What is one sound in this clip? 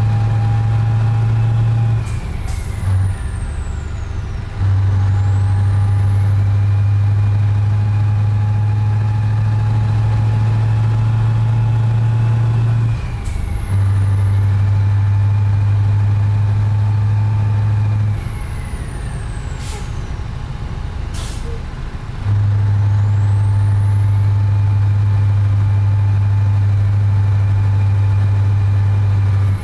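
A truck engine drones steadily, dropping briefly as the gears change.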